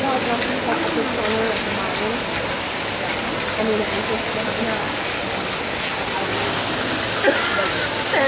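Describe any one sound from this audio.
A waterfall splashes steadily into a pool.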